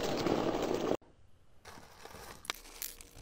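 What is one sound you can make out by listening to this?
Plastic pieces rustle and click as fingers pull them apart.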